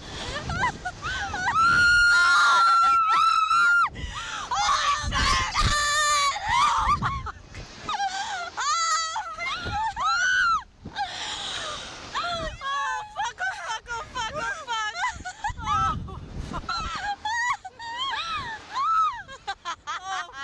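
Two young women scream loudly and close by.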